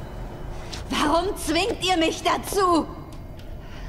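A young woman speaks with distress, close by.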